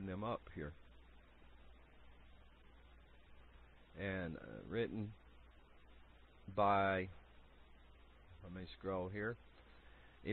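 A man speaks into a microphone in short phrases with long pauses.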